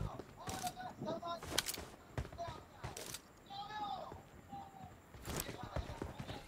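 Rifle shots crack.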